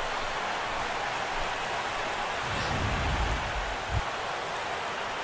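A large crowd murmurs and cheers steadily.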